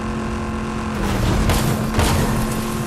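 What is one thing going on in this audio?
A game vehicle splashes through water.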